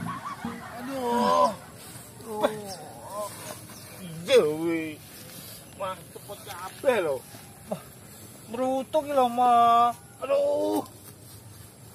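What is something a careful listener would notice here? A woman cries out and wails loudly up close.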